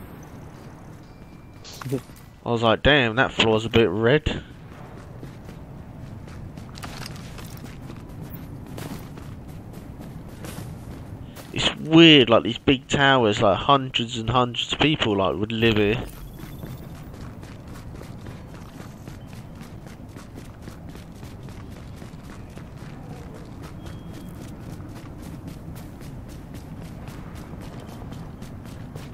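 Footsteps crunch through snow at a steady jog.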